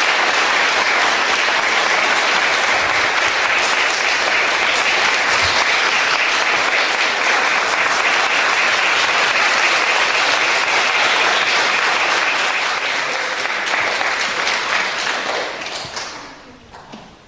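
An audience applauds loudly in an echoing hall.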